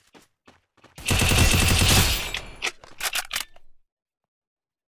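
A gun fires a rapid burst.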